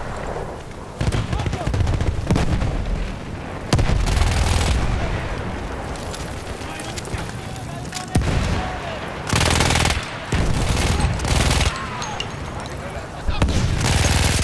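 Loud explosions boom and rumble nearby.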